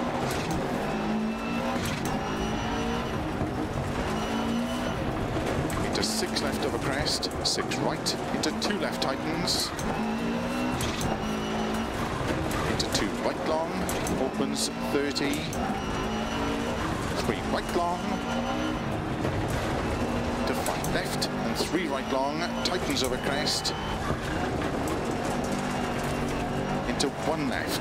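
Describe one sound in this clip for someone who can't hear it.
Gravel crunches and rattles under car tyres.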